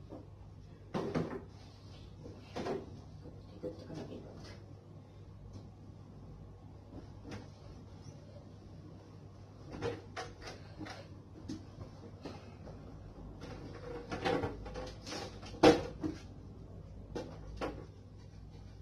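Soft knocks and rustles come from cleaning things on a counter.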